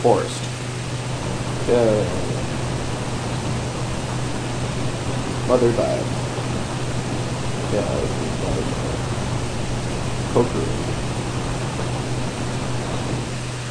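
Flames crackle softly.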